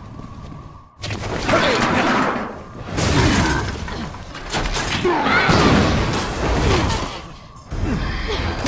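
Men shout and grunt while struggling.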